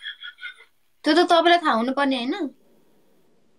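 A young woman talks over an online call.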